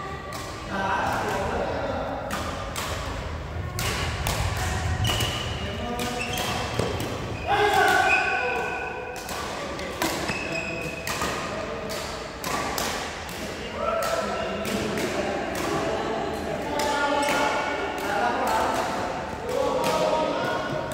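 Young men talk and call out to each other across a court.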